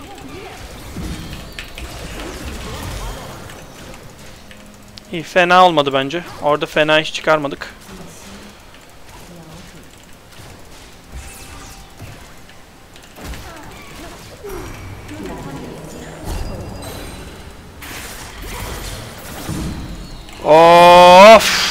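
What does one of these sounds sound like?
Fantasy spells whoosh and crash in a battle.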